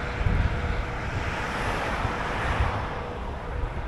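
A van drives past close by.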